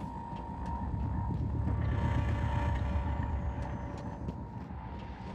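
Footsteps thud on a metal floor at a walking pace.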